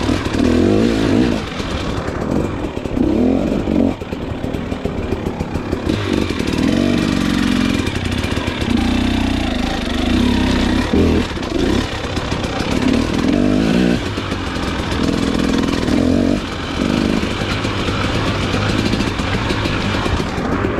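Tyres crunch over dirt and roots.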